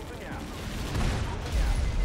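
Gunfire rattles as game vehicles shoot.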